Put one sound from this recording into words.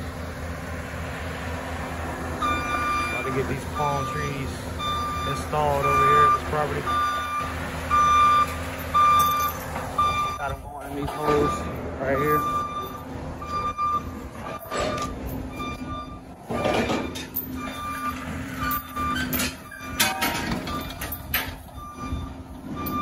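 A tracked loader's engine idles steadily nearby.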